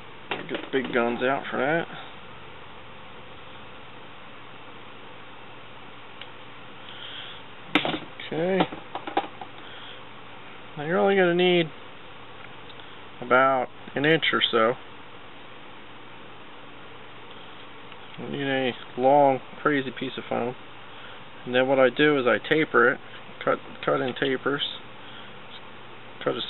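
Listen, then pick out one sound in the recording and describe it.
A man speaks calmly and close by, in short bursts with pauses.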